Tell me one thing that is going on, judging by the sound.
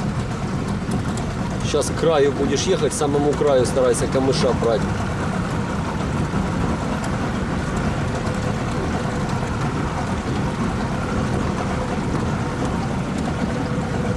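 Water splashes softly against a slowly moving boat.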